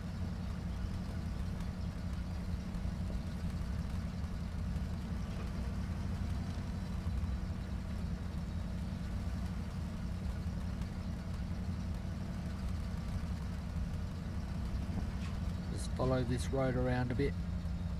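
Tyres roll over a rough dirt track.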